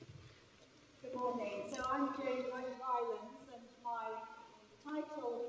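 A woman speaks clearly through a microphone in a large echoing hall.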